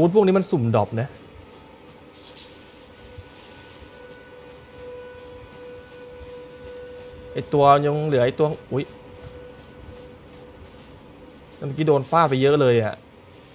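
Footsteps rustle through tall grass.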